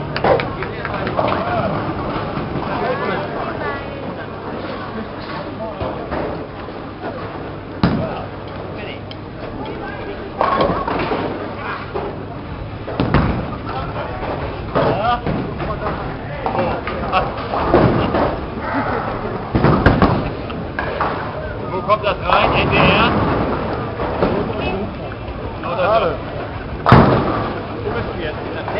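A crowd chatters loudly in an echoing hall.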